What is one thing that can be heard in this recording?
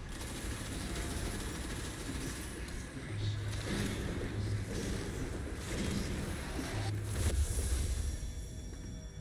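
Explosions and heavy blows boom loudly.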